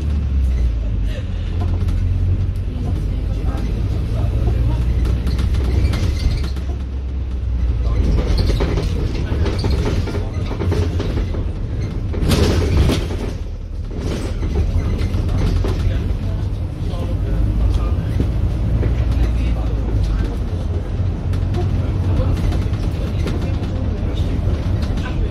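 A vehicle engine rumbles steadily while driving along a road.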